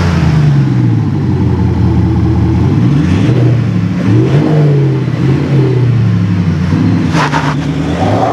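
A van engine revs up and down while idling.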